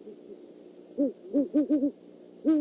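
An owl hoots loudly nearby, in short repeated calls.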